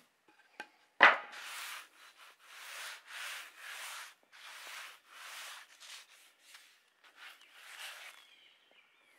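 A hard block scrapes in rough, repeated strokes.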